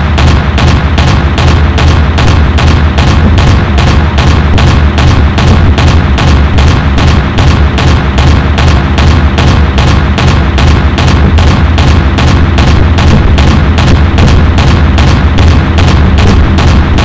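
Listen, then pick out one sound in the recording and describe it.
Twin anti-aircraft guns fire in rapid, steady bursts.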